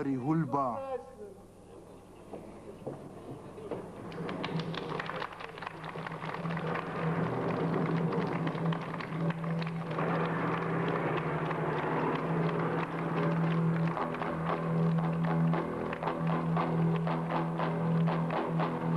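A large chorus sings together.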